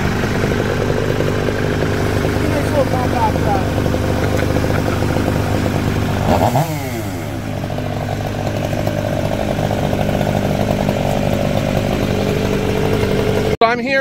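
A diesel engine idles and rumbles steadily close by.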